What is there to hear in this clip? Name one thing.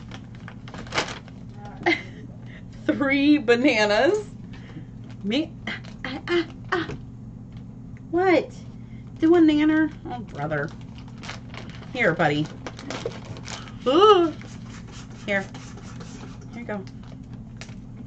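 Paper and plastic packaging crinkles and rustles.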